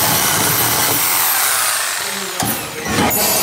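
A power tool whirs loudly as it cuts metal.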